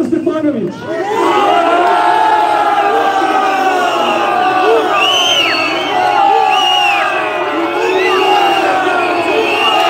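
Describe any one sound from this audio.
A crowd of people chatters and calls out loudly.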